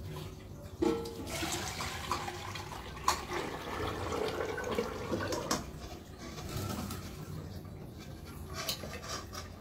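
A metal bowl clinks against the rim of a metal pot.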